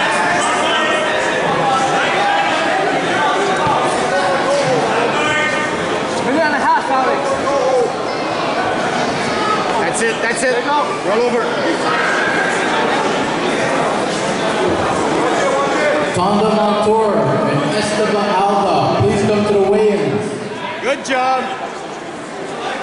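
A crowd of spectators shouts and calls out loudly in a large echoing hall.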